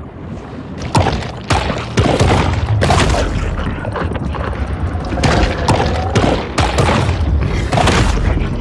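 Water churns and swirls as a shark swims.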